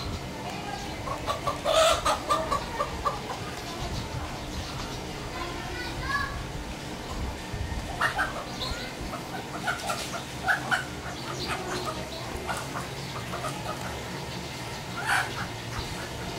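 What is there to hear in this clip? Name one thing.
A chicken squawks and clucks loudly.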